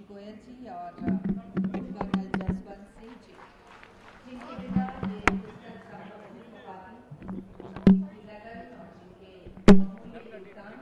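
A man claps his hands a few times.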